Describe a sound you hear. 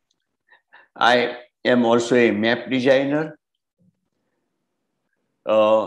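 An elderly man speaks calmly through an online call.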